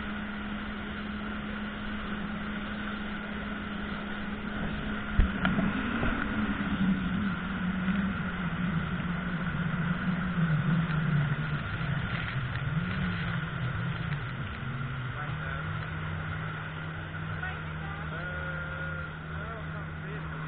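Water sprays and splashes hard behind a speeding boat.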